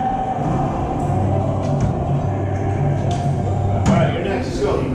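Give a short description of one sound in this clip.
A ball smacks against a wall with a sharp echo in a hard, echoing room.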